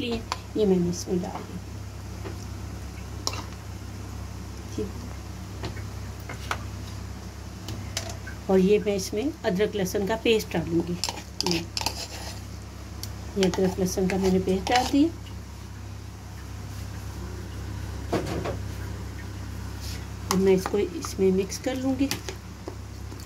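A metal spoon clinks and scrapes against a plastic bowl.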